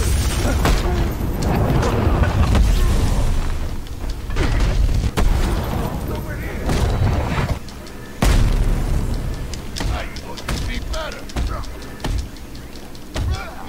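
Men grunt and shout while fighting.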